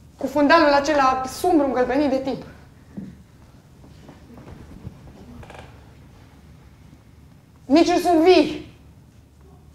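A woman speaks loudly and with animation, heard from a distance in a large hall.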